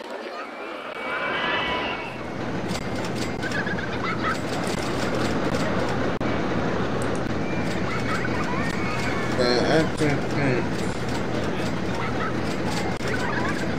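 Roller coaster cars rattle and rumble along their tracks.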